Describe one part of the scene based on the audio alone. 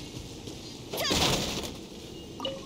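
A sword swings with a sharp whoosh and a crash.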